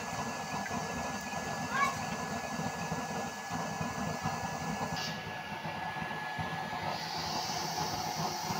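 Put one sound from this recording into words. A fire roars and crackles under a pot.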